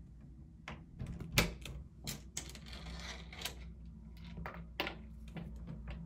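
A dog scratches and paws at a door.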